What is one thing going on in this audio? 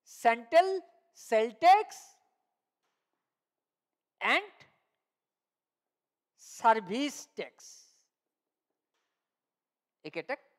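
A man speaks into a headset microphone in short phrases, like a teacher explaining.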